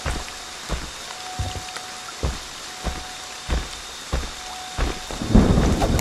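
Heavy footsteps crunch slowly over dry grass.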